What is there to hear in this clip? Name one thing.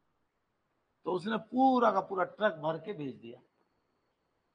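A middle-aged man speaks clearly into a microphone.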